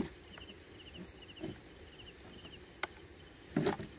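Water drips and splashes from a fishing net being pulled in.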